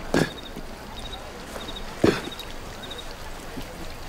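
A man lands with a heavy thud on stone ground.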